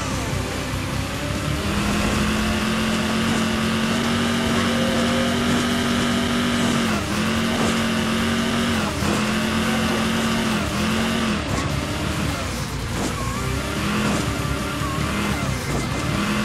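A game car engine revs and roars steadily, dropping briefly now and then.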